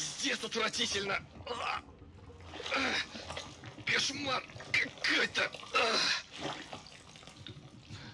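Water sloshes as a hand gropes in a toilet bowl.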